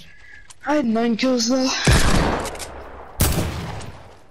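Gunshots bang sharply a few times.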